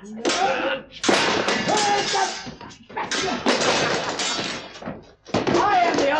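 Men scuffle and grapple noisily.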